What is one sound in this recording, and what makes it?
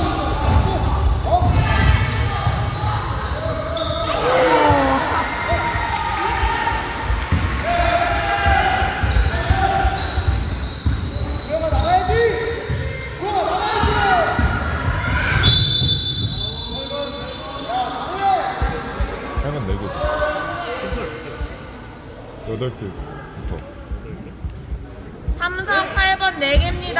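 Children shout and call out during play.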